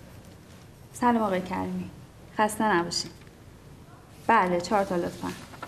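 A woman speaks calmly into a telephone nearby.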